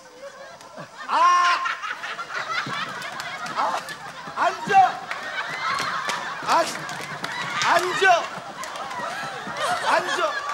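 A man shouts loudly and with animation into a microphone.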